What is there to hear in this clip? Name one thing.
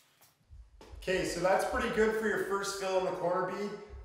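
A young man talks with animation nearby.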